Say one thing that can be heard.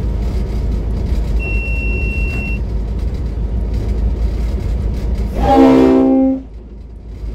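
A train's wheels clatter along the rails.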